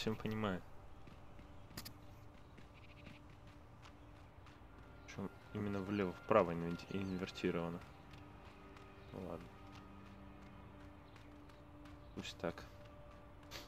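Footsteps run quickly on stone paving.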